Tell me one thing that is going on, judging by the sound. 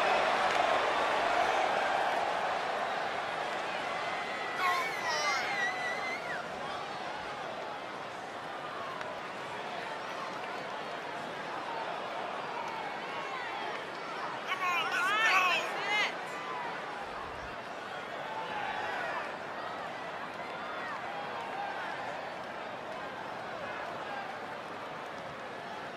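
A large crowd cheers steadily in a big echoing arena.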